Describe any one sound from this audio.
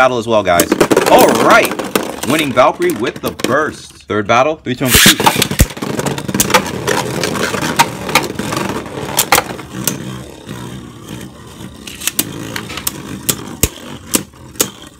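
Spinning tops clack sharply as they collide.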